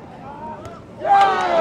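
A crowd cheers loudly as a goal is scored.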